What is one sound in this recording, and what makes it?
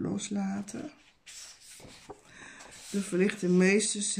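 Paper pages rustle as a book is opened.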